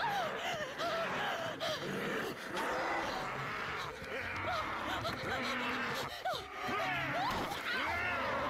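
A young woman screams and cries out in terror.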